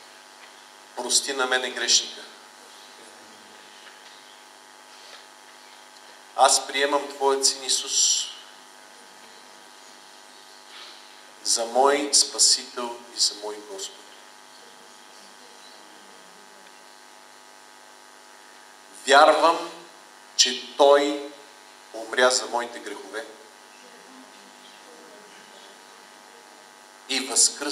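A middle-aged man speaks slowly into a microphone, with long pauses.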